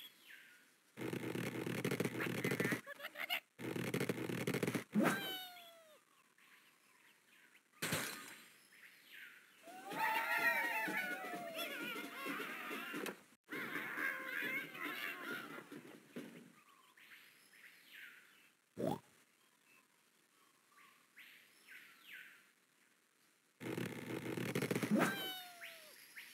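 A slingshot stretches and creaks.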